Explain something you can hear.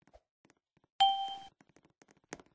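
A short bright chime rings out.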